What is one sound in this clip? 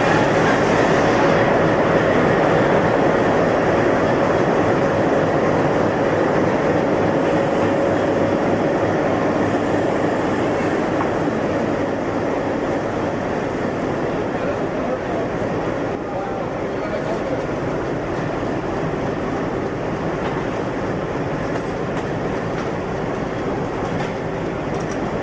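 A diesel locomotive engine rumbles loudly and steadily close by.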